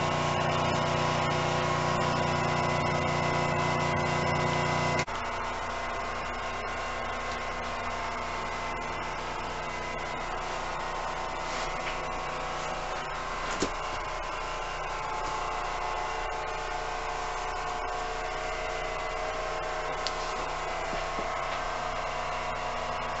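A train rumbles and hums steadily along the tracks.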